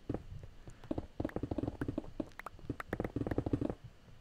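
Stone blocks crack and break in quick succession.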